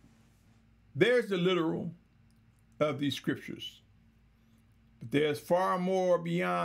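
A man speaks calmly and clearly, in short phrases with pauses.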